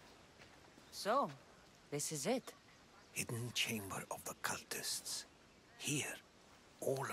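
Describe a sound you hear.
An older man speaks with animation.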